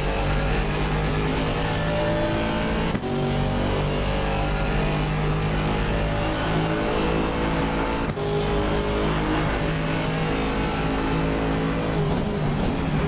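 A racing car engine roars loudly, climbing in pitch through quick gear changes.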